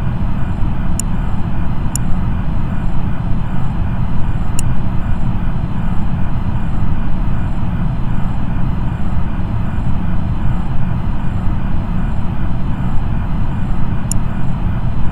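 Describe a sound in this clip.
A short digital click sounds as menu buttons are pressed.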